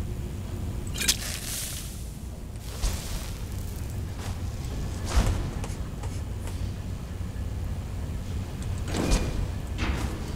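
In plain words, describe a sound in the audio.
A fiery magic spell bursts with a whoosh, again and again.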